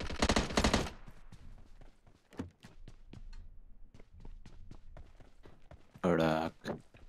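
Footsteps crunch quickly on the ground.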